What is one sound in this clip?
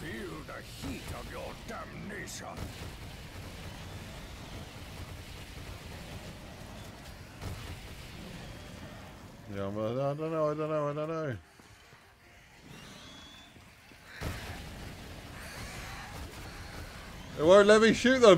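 Fiery blasts roar and crackle from a video game.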